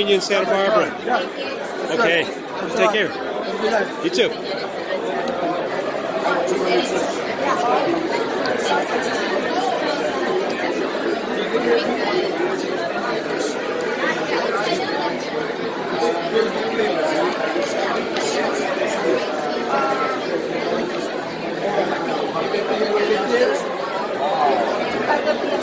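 A crowd chatters all around in a large room.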